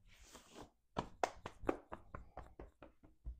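Hands pat against cloth.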